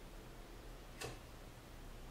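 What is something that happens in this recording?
A lighter clicks once.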